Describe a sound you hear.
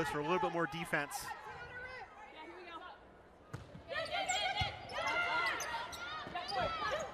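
Young women shout to each other across an echoing gym.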